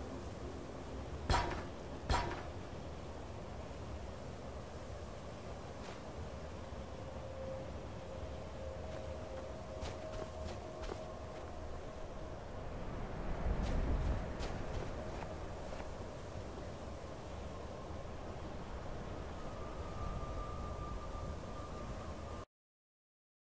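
Wind blows steadily, carrying snow.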